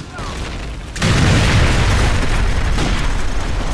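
A loud explosion booms and rumbles nearby.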